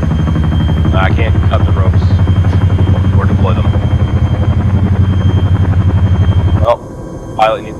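Helicopter rotor blades chop loudly and rapidly.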